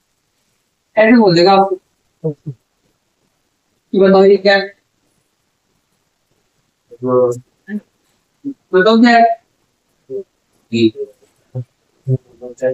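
A man speaks calmly in short bursts, close by.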